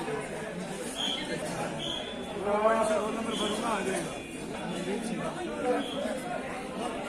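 Electronic scales beep in short high tones.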